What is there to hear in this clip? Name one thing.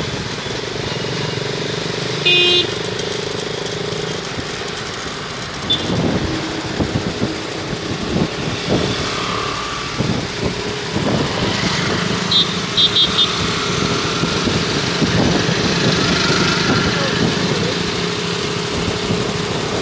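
A motorcycle engine rumbles steadily nearby.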